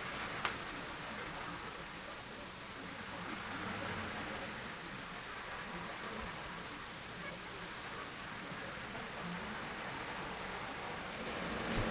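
Pastel chalk scratches and rubs softly on paper.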